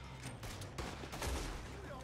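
Gunshots crack sharply nearby.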